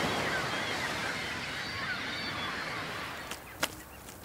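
Waves break and rush onto a shore.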